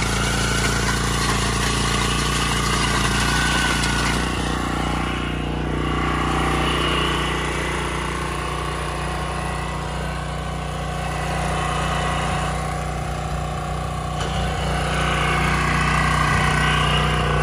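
A small diesel engine chugs steadily close by.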